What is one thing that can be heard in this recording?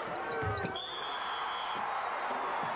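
A referee's whistle blows once, sharp and short.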